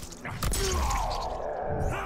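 A blade slices through flesh with a wet crunch.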